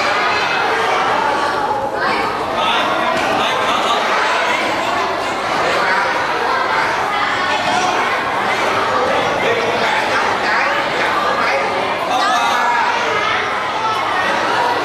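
A crowd of children and adults chatter all around in a busy, echoing room.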